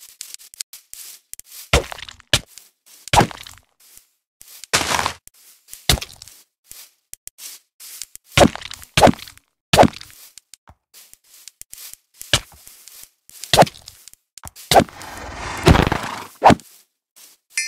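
Sword blows strike a creature in sharp, quick hits.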